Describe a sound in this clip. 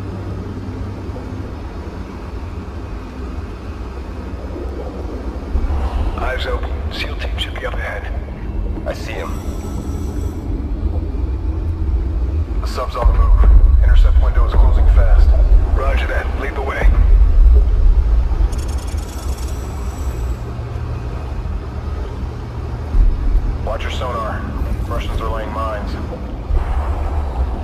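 A vehicle's engine rumbles deeply and steadily.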